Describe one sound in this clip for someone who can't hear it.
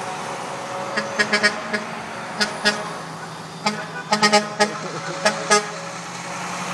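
A dump truck rattles and clanks as it rolls by.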